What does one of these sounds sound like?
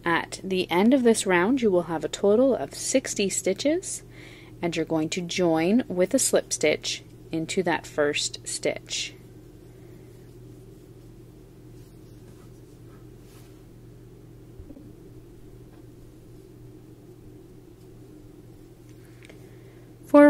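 A crochet hook pulls yarn with a soft rustle.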